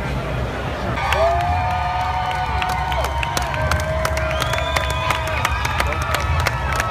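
Drums and cymbals beat along with a marching band.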